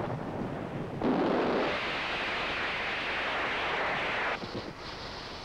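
A blast roars and rumbles.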